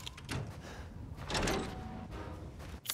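A metal gate clangs and creaks open.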